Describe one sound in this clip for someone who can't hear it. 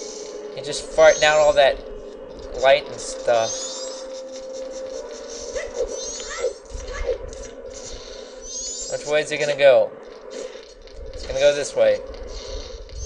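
A video game character grunts and yells while swinging a sword.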